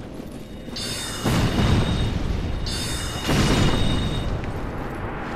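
A magic spell bursts with a loud rushing whoosh.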